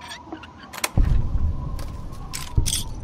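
A safe door thuds open.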